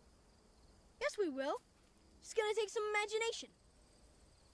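A young boy speaks calmly, close by.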